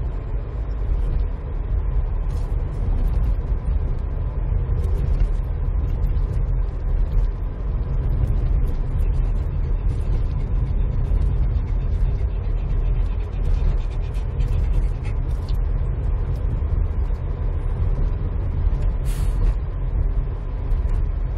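Wind rushes and buffets past an open car window.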